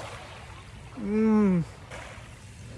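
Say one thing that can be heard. A young man hums with pleasure.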